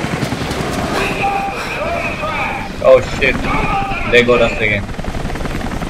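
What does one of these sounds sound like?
A man shouts through a loudspeaker.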